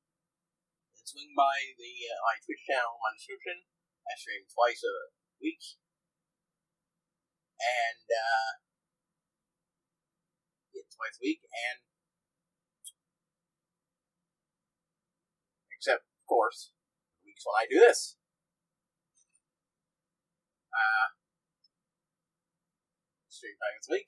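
A young man talks casually in bursts, close by, with pauses between phrases.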